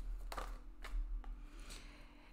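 Playing cards tap and slide softly as they are handled.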